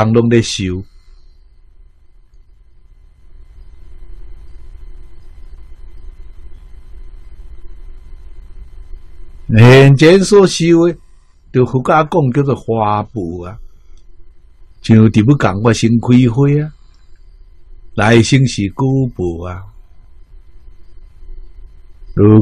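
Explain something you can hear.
An elderly man speaks calmly and warmly into a close microphone, with long pauses.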